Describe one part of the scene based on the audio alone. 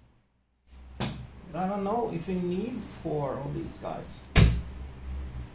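A metal door panel clunks and latches.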